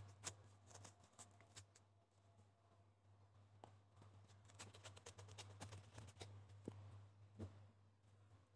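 A knife cuts into a melon rind with crisp crunching.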